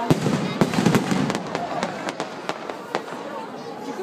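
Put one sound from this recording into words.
Fireworks bang and crackle overhead.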